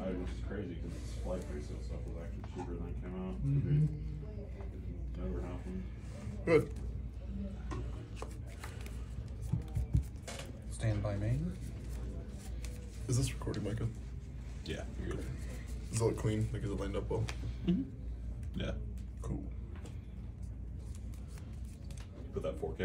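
Cards rustle and shuffle in hands.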